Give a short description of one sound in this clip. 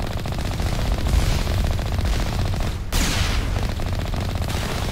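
A cannon fires with loud booming blasts.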